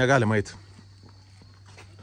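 Footsteps walk along a path.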